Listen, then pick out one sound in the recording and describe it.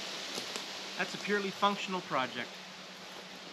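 A man speaks briefly and calmly outdoors, close by.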